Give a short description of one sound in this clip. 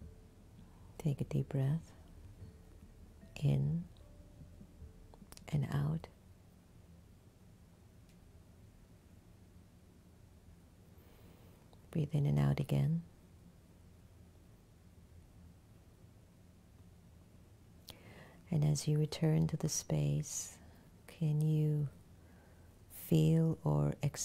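A woman speaks slowly and calmly into a close microphone, with long pauses.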